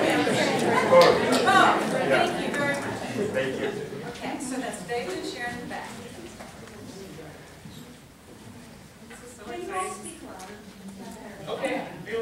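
A woman speaks with animation into a microphone in a room with a slight echo.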